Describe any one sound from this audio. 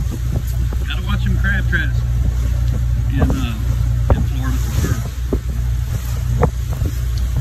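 Water splashes against a boat's hull as it cuts through the waves.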